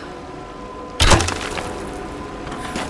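An arrow hits wood and bursts with a loud blast.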